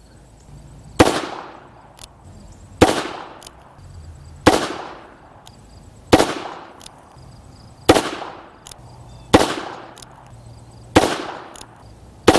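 A pistol fires single sharp shots at a steady pace outdoors, each with a brief echo.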